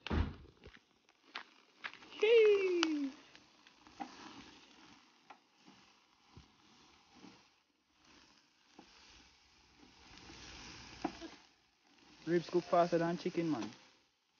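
Meat sizzles on a grill.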